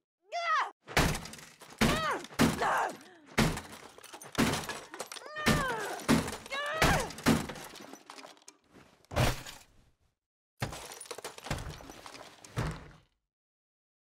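A heavy box bangs hard against a metal door, again and again.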